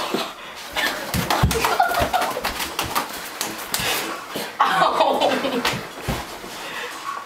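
Bodies thump and scuffle on wooden stairs.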